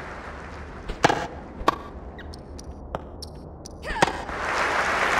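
A tennis ball is struck with a racket, with sharp pops.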